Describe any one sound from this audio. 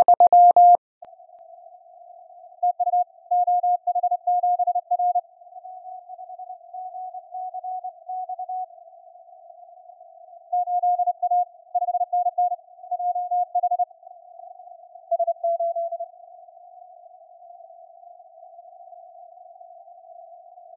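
Soft radio static hisses steadily.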